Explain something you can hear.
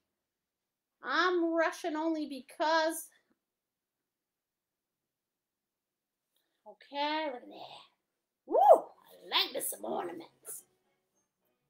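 A woman speaks with animation close to a microphone, in short bursts.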